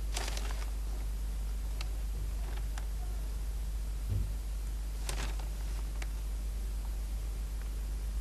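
Newspaper pages rustle under a hand.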